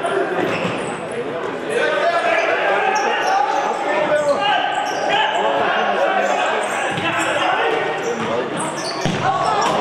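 Sneakers squeak sharply on an indoor court floor.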